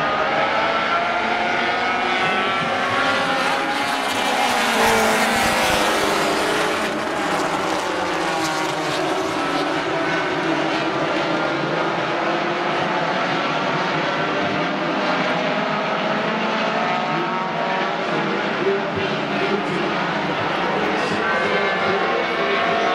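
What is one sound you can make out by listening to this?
Many race car engines roar loudly as the cars speed around the track.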